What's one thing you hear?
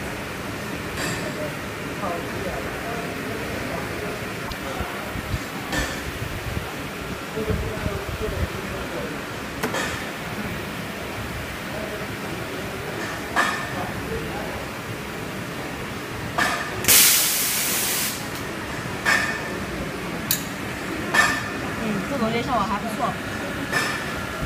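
Metal parts of a press knock and clank now and then.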